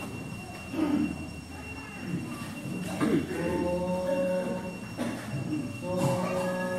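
A choir of young men and women sings together in a room with some echo.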